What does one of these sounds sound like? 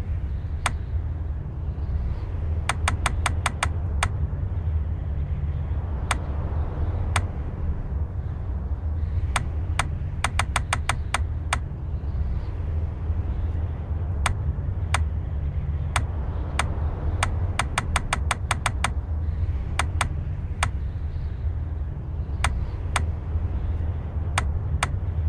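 Short, crisp menu clicks tick in quick bursts as a cursor scrolls through a list.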